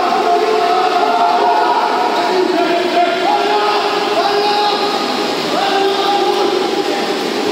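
Water splashes and churns as swimmers thrash through a pool.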